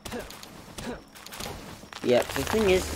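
An axe chops into wood.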